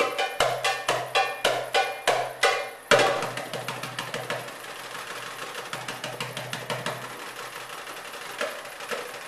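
A hand drum beats a fast rhythm.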